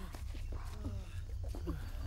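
A young woman gulps water from a bottle.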